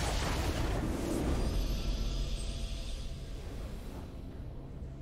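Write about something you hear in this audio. A triumphant game fanfare swells and then fades.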